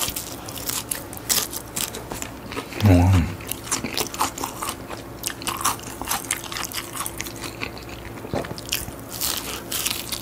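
A young man chews crunchy food loudly, close up.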